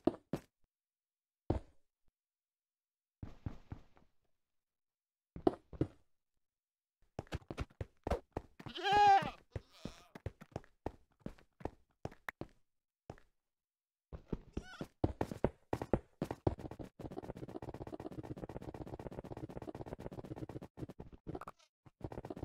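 Blocks are placed and broken with short, dull knocks in quick bursts.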